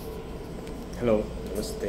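A man speaks briefly, close by.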